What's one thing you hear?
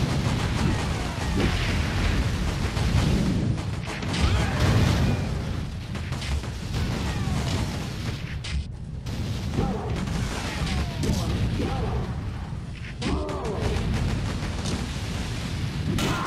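Gunfire crackles and bangs repeatedly.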